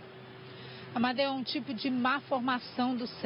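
A young woman speaks clearly into a microphone, as if reporting.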